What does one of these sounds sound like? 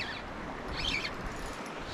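A fishing reel whirs as its handle is turned.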